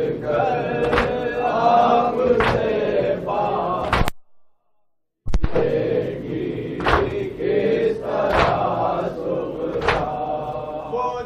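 A young man chants a lament into a microphone, with a loud, ringing voice.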